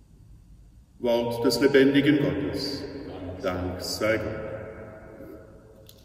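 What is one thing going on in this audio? An older man chants in a slow sung voice, echoing through a large hall.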